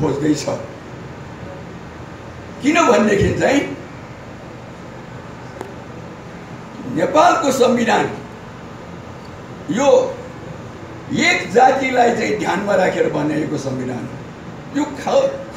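A middle-aged man gives a forceful speech through a microphone and loudspeakers.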